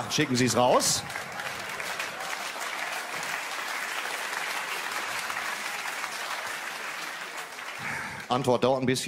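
An audience laughs and applauds in a hall.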